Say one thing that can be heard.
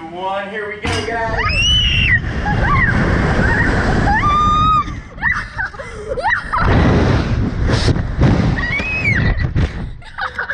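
A girl screams with high, sliding cries.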